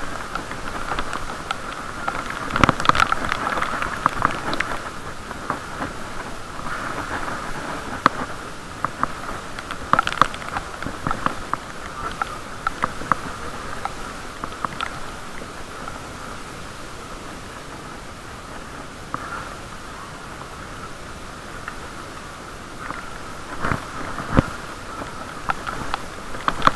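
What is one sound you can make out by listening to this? Bicycle tyres hiss on wet pavement.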